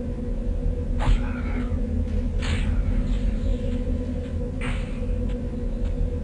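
A magical spell shimmers with bright whooshing chimes, several times.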